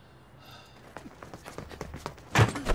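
Men run past on pavement with quick footsteps.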